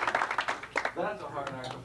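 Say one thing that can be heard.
A man speaks to an audience.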